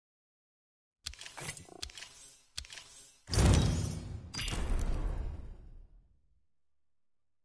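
Electronic game menu sounds whoosh and chime.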